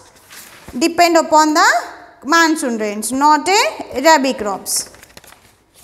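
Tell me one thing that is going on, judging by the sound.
A young woman speaks clearly and with animation close to a microphone.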